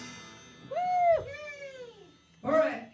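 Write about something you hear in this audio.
A man whoops into a microphone.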